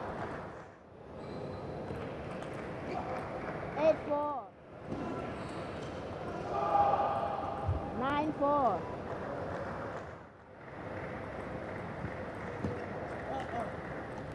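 A table tennis ball clicks back and forth off paddles and a table.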